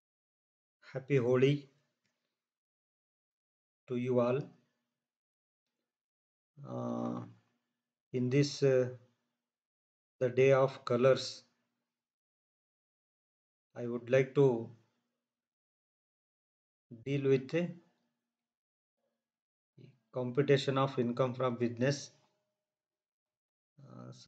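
An older man speaks calmly into a close microphone, in short phrases with pauses.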